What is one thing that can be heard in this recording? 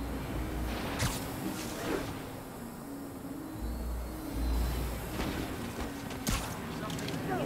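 Sharp swishes snap out now and then.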